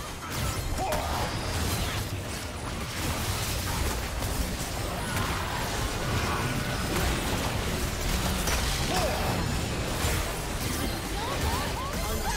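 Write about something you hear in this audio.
Spell effects and attacks crackle and boom in a fast video game battle.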